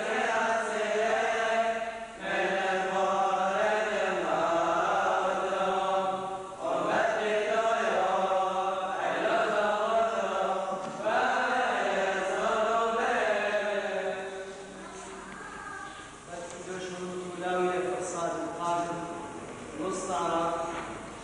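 A congregation of men sings a hymn together in a large echoing hall.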